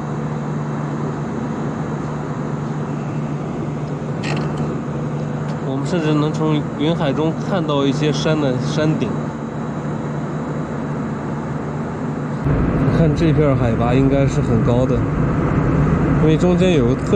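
A jet engine hums steadily inside an airplane cabin.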